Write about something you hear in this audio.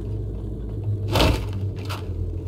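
A rifle butt strikes a metal door with a heavy thud.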